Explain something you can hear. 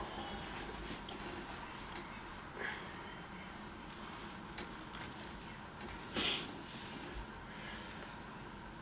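A young man murmurs and exclaims close by.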